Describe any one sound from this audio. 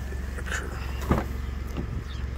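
A car door latch clicks and the door swings open.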